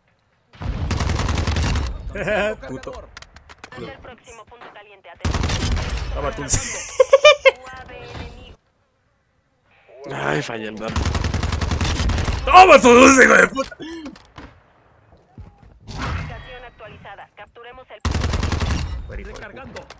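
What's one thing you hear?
A rifle fires rapid bursts of automatic gunshots.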